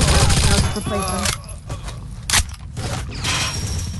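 A submachine gun's magazine is swapped with metallic clicks.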